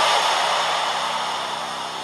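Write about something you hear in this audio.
A young man speaks breathlessly close by.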